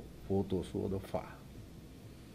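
A man speaks a few words into a microphone.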